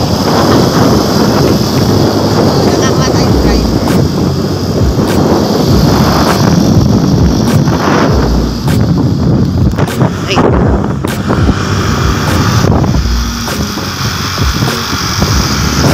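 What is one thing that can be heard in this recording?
Wind rushes loudly against a microphone on a moving motorcycle.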